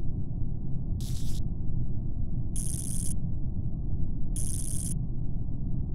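Wires snap into place with short electric zaps.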